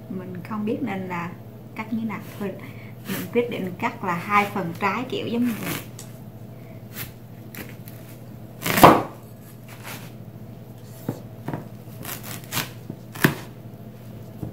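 A knife cuts through a watermelon rind with crunching and scraping.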